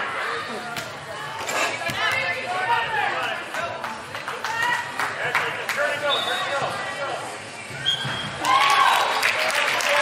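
Young women shout and call to each other in a large echoing hall.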